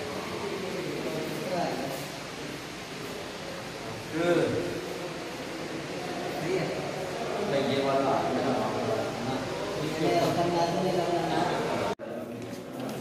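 A young man talks close by.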